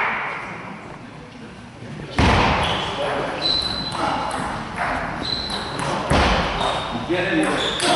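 A table tennis ball clicks against paddles and the table in an echoing hall.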